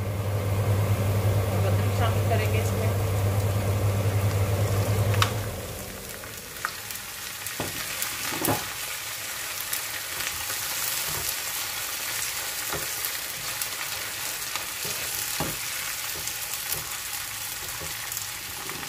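Chopped onions sizzle in oil in a frying pan.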